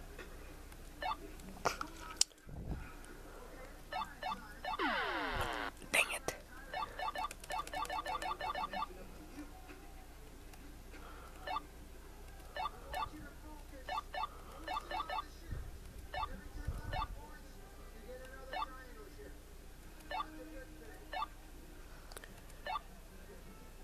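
Short electronic blips from a video game repeat at an uneven pace.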